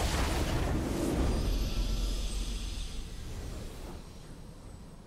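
A triumphant game fanfare swells loudly, then fades away.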